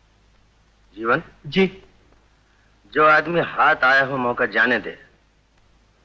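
A second man answers calmly in a low voice.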